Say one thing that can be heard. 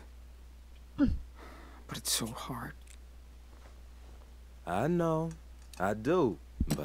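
A man answers in a calm, gentle voice.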